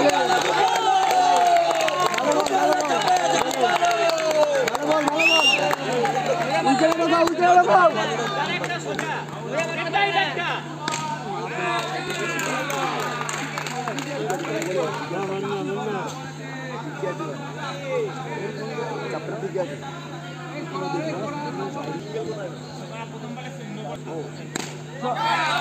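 A large crowd chatters and calls out outdoors.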